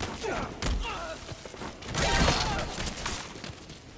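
A body thuds to the ground after a struggle.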